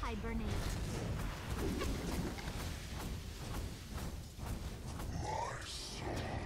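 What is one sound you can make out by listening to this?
Game heroes clash with sharp hits.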